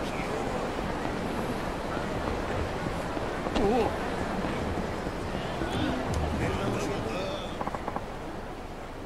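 A man's footsteps run quickly on pavement.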